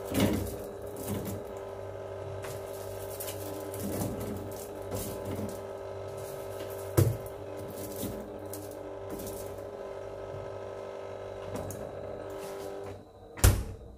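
A refrigerator hums steadily.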